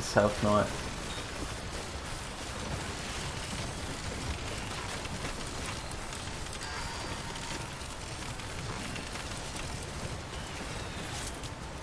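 Heavy footsteps crunch over loose rocks.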